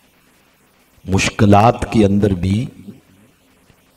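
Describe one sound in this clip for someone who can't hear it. A man speaks into a microphone in a melodic, chanting voice.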